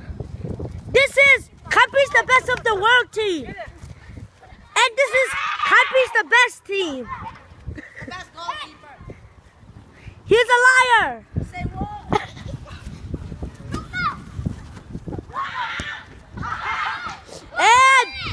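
A young boy shouts loudly near the microphone.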